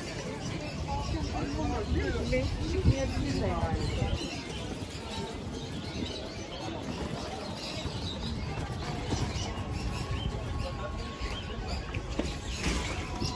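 People chatter at a distance in a busy street outdoors.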